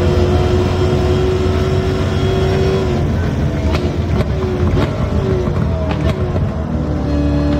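A car engine roars steadily at high speed, then drops in pitch as the car slows for a bend.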